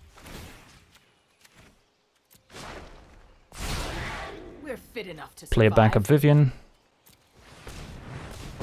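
A magical spell whooshes through the air.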